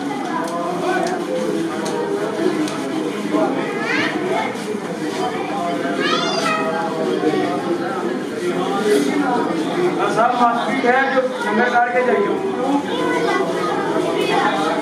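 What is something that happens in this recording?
Many men beat their chests with their hands in a steady rhythm.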